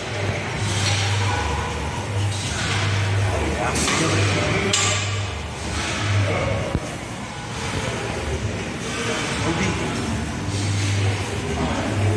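A man breathes hard as he exercises.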